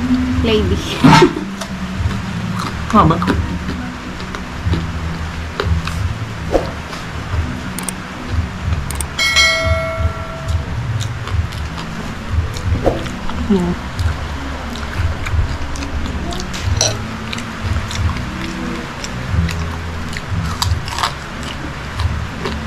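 Crispy food crunches loudly as a man chews.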